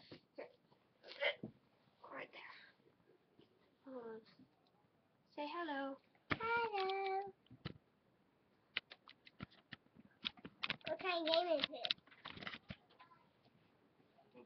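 A teenage girl talks close by, in an animated, chatty way.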